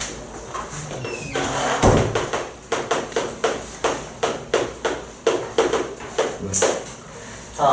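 Chalk taps and scratches on a blackboard in quick strokes.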